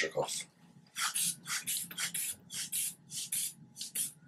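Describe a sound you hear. A rubber bulb is squeezed repeatedly, puffing air in short bursts.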